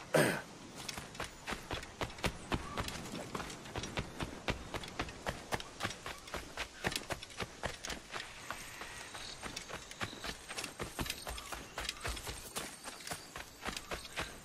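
Quick footsteps run over sand and stone.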